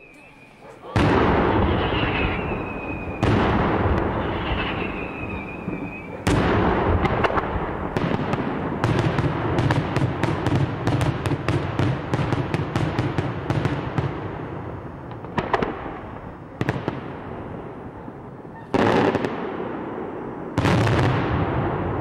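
Fireworks burst with loud booming bangs that echo off the hills.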